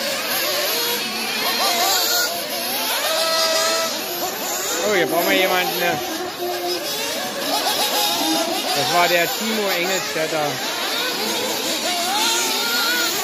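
Nitro-powered 1/8 scale off-road buggies race around a track, their small engines screaming at high revs.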